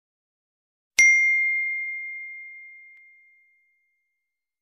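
A small bell chimes once and slowly fades away.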